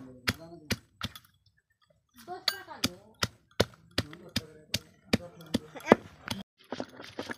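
A glass bottle pounds garlic on a stone with sharp, regular knocks.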